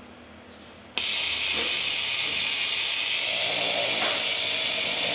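A small handheld air tool hisses loudly and steadily.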